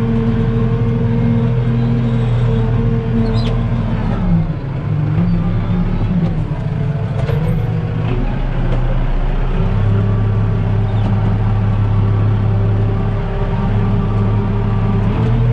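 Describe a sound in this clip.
A disc harrow rattles and scrapes through dry soil and cane straw.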